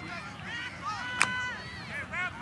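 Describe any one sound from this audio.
A referee's whistle blows a short blast.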